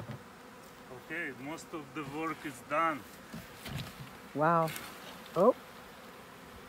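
A man speaks nearby, outdoors.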